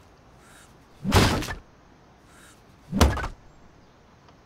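A sledgehammer strikes wood with heavy thuds.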